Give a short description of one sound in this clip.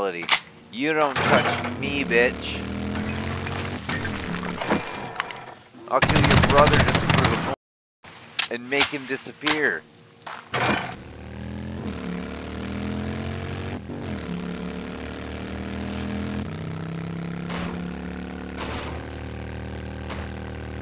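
A motorcycle engine hums and revs steadily.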